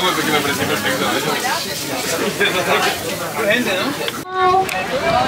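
A crowd of young people chatters and laughs nearby.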